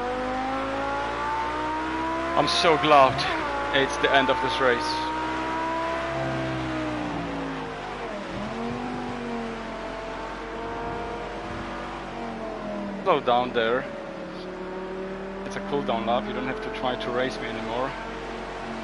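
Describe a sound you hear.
A car engine drones steadily, its pitch rising and falling as it speeds up and slows down.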